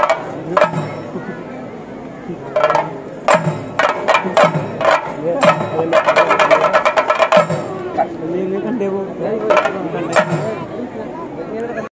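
Drummers beat hand drums loudly and fast outdoors.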